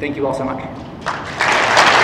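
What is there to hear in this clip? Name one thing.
A woman speaks through a microphone in a large hall.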